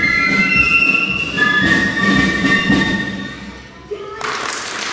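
A flute band plays a tune together and then stops.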